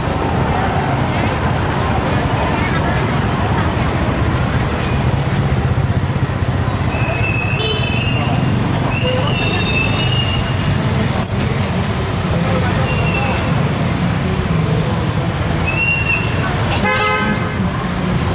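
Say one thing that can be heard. A crowd of people chatters in the background.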